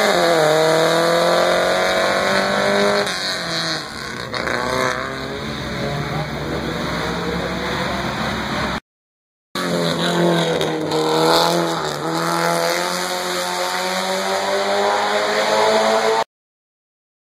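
A small four-cylinder race car revs high as it accelerates uphill, shifting through the gears.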